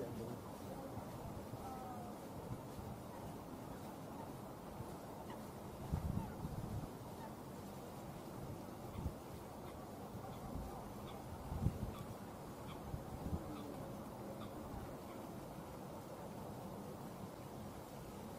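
A small water bird paddles quietly through calm water.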